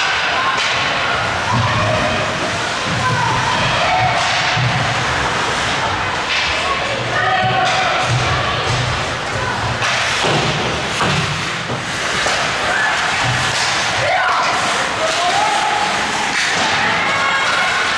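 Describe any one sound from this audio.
Spectators shout and cheer from the stands.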